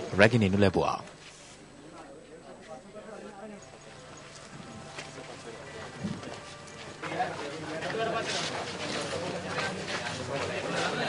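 A crowd murmurs quietly outdoors.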